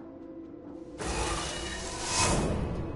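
A heavy metal hatch whirs open.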